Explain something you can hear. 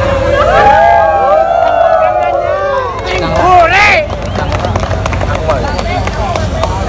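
A large crowd shouts and cheers loudly outdoors.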